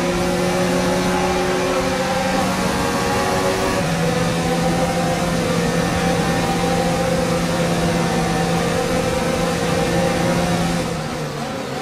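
A racing car engine screams at high revs.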